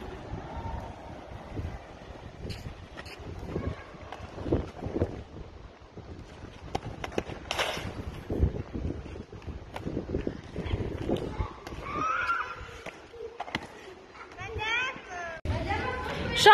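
Inline skate wheels roll and scrape on pavement.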